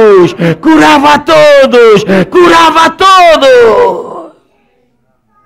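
A middle-aged man speaks loudly and with animation through a microphone.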